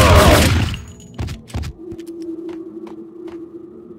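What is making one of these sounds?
Footsteps clank on metal stairs.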